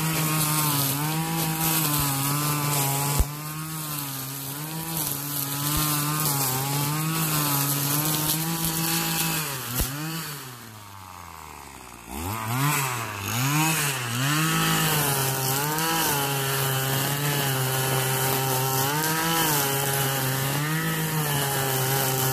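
A petrol string trimmer engine whines loudly, its pitch rising and falling, then drops to a low idle and revs back up.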